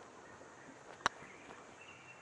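A putter taps a golf ball once.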